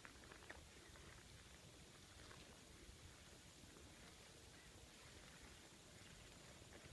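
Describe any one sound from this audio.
Wind blows softly across an open field.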